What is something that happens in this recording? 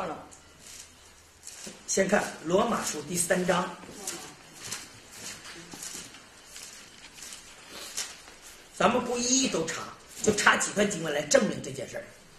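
Book pages rustle as a man turns them.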